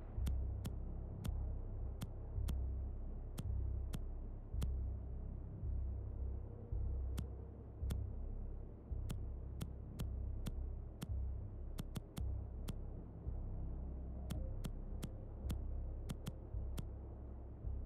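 Short electronic clicks tick one after another at an uneven pace.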